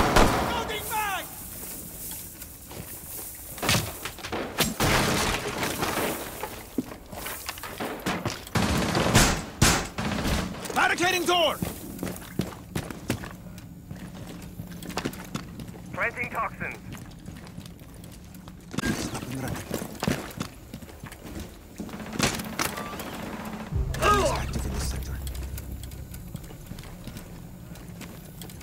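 Footsteps thud and scuff on a hard floor.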